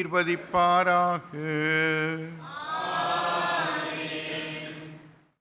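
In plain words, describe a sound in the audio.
An elderly man sings long, slow notes through a microphone.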